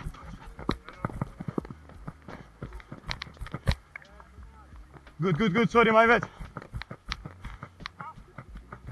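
A football is kicked with sharp thumps.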